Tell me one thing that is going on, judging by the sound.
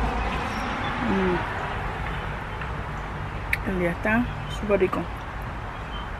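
A woman speaks briefly and casually, close by.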